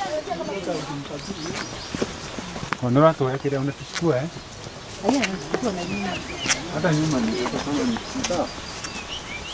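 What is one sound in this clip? Adult men and women talk casually as they walk nearby, outdoors.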